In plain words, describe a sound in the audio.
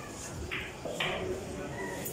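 Billiard balls clack together on a table.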